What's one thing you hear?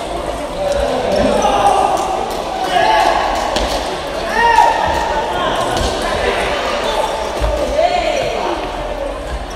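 Sports shoes squeak on the floor.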